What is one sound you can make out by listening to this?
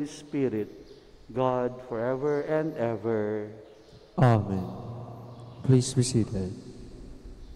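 A man sings a chant through a microphone in a large echoing hall.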